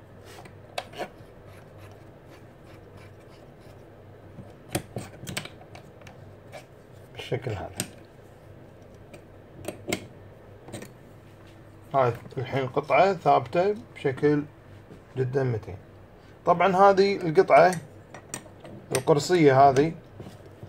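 A metal wrench clicks and taps against metal parts.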